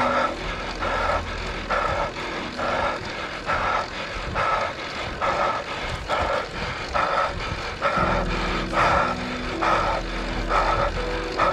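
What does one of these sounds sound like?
Road bike tyres hum on asphalt.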